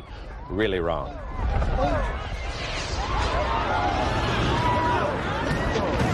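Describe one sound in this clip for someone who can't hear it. Fireworks burst and crackle overhead.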